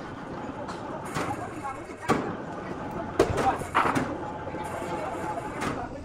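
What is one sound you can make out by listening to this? Steel cables creak and clank under a heavy load.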